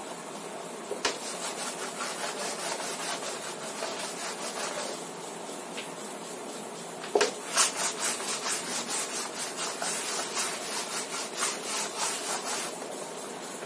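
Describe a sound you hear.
A man wipes a whiteboard with quick rubbing strokes.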